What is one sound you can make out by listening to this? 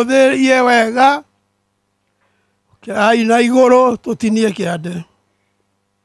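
An elderly man speaks loudly into a microphone, heard through a loudspeaker.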